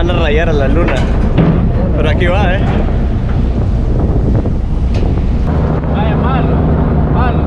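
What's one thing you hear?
Wind rumbles loudly against a microphone outdoors.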